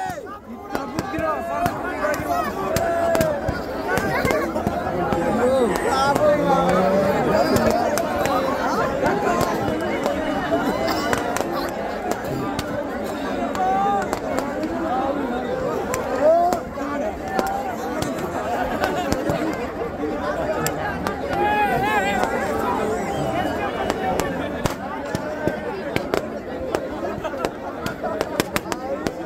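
A large crowd of people talks and shouts outdoors.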